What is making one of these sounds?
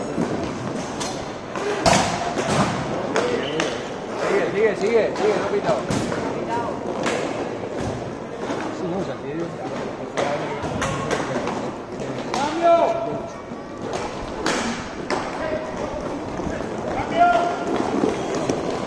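Hockey sticks clack sharply against a ball and the floor.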